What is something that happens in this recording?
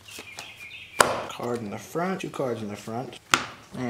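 A piece of wood knocks sharply against a board.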